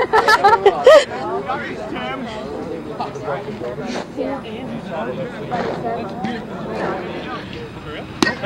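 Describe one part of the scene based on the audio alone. Men and women chat and call out nearby, outdoors.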